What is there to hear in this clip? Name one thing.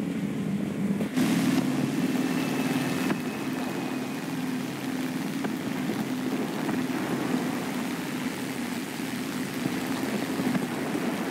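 Wind rushes past an aircraft.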